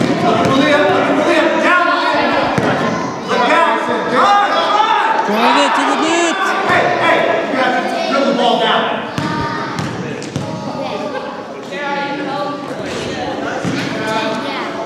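Children and adults shout and cheer in a large echoing hall.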